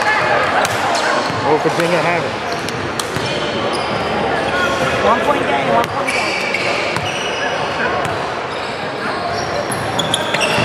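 People chatter and call out in a large echoing gym.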